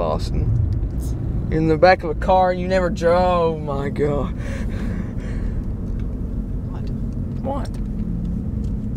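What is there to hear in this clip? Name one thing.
A car's engine and tyres rumble steadily on the road.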